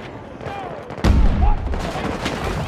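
A deep explosion booms nearby and rumbles away.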